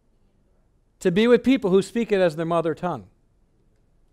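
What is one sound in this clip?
A man speaks with animation into a microphone, as if lecturing.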